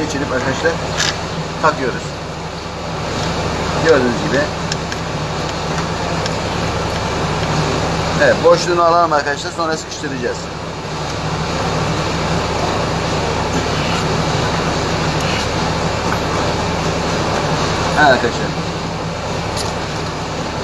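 A metal wrench clicks and clinks against a scooter's parts.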